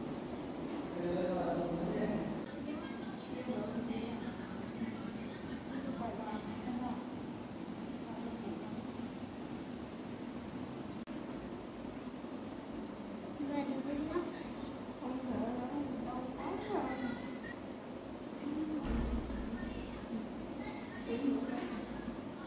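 A woman speaks calmly and quietly nearby.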